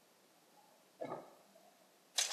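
A heavy wooden chest lid thuds shut.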